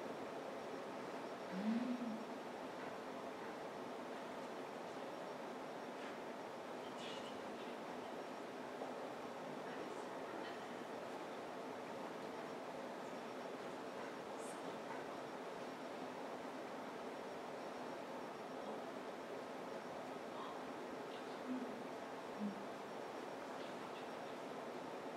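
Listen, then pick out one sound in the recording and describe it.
A projector fan hums steadily.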